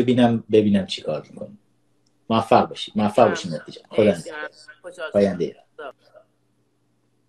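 A teenage boy talks with animation over an online call.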